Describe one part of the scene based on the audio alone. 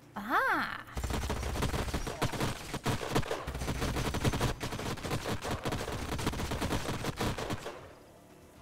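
Rapid gunfire and explosions crackle in a battle.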